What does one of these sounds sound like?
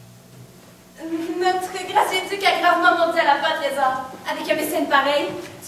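A young woman sings loudly in an echoing hall.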